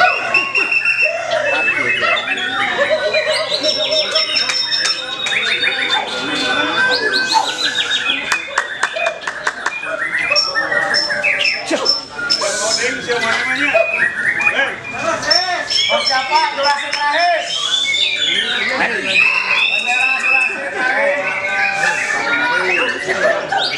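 A songbird sings loudly and closely in a rich, varied stream of whistles, trills and chirps.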